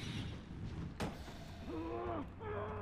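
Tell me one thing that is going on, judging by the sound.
An explosion bursts with a loud whoosh.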